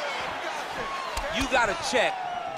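A bare foot kick lands with a dull thud.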